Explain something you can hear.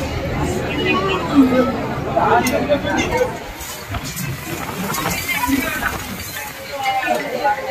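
A crowd of men and women talks and calls out nearby, outdoors.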